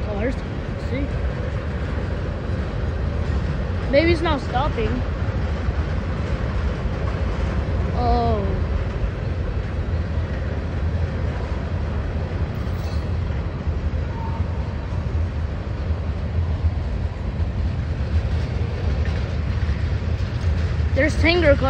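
Tank cars of a freight train rumble and clatter steadily past, close by.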